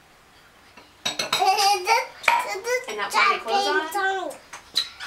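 A small boy talks excitedly up close.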